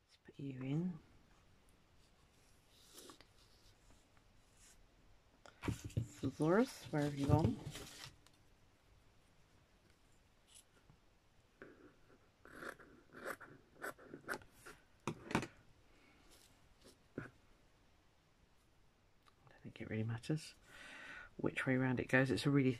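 Paper and fabric rustle softly.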